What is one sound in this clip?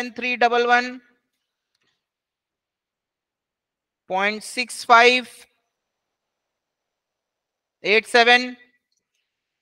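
A young man speaks calmly through a microphone, in short phrases with pauses.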